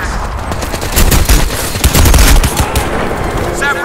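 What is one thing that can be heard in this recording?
Rapid gunfire rings out in bursts.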